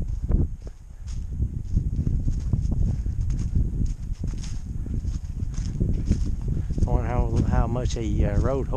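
Footsteps crunch through dry leaves on a trail.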